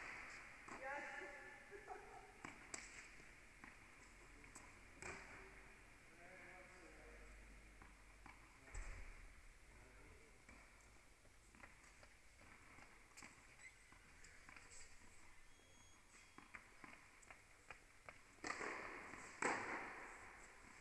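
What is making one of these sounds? Tennis balls are struck and bounce with sharp thuds in a large echoing hall.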